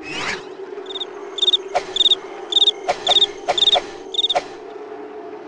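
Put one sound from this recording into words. A cartoon cricket chirps in quick repeated bursts.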